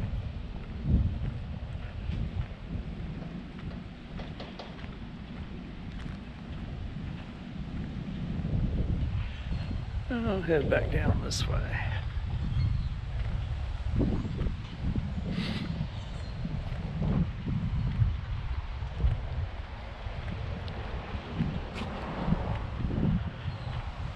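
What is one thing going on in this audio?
Wind blows and buffets outdoors in gusts.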